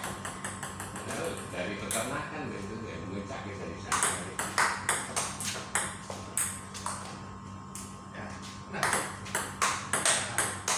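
A table tennis ball clicks rapidly back and forth off paddles and a table.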